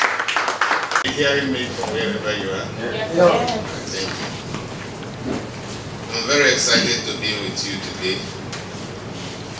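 A man speaks calmly into microphones.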